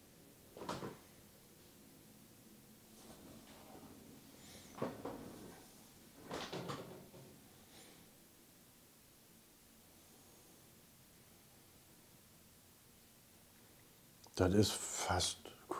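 A middle-aged man speaks calmly and close to a microphone, in short bursts.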